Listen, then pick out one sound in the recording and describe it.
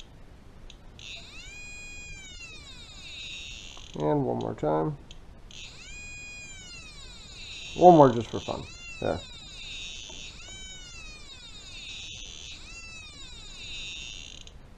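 An electronic leak detector sounds a high, sweeping warble alarm over and over.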